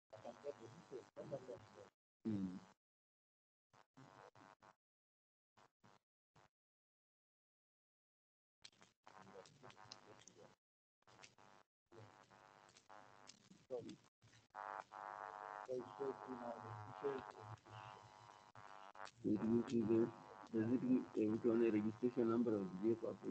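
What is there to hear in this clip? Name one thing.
A man talks steadily over an online call.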